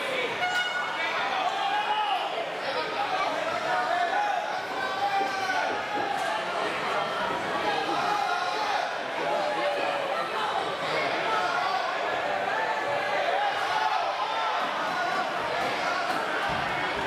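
A crowd of people chatters and shouts in a large echoing hall.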